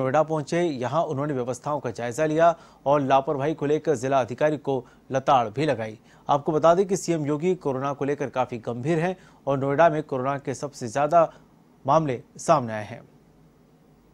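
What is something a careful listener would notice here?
A middle-aged man speaks steadily through a microphone, like a news reader.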